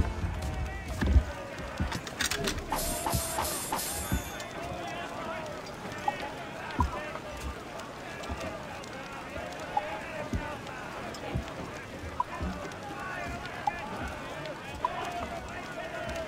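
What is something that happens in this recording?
A crowd of men shouts and cheers in the open air.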